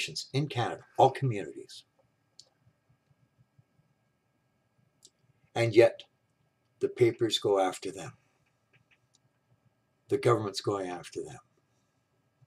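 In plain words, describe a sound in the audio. An elderly man speaks calmly and close by, in short bursts with pauses.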